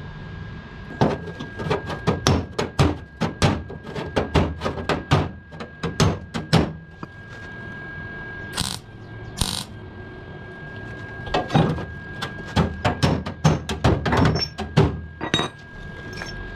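A hammer bangs rapidly on sheet metal.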